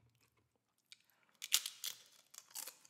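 A woman crunches a chip close to a microphone.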